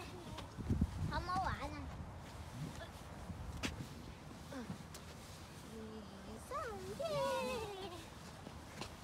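Young girls talk and call out playfully outdoors.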